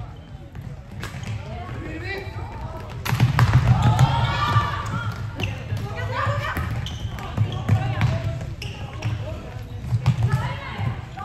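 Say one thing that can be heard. Nearby spectators, men and women, shout and cheer loudly.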